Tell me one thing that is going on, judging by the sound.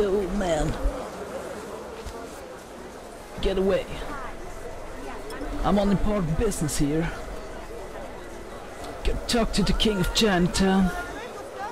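A dense crowd murmurs and chatters all around.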